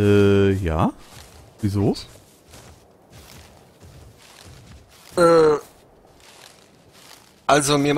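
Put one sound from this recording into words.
Footsteps pad softly on sand.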